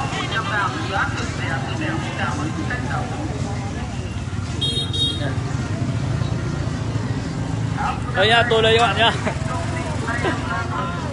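Motorbike engines idle and rumble nearby.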